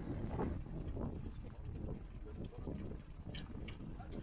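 A metal shackle clinks against a tow hitch.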